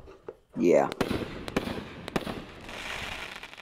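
Firework embers crackle and pop.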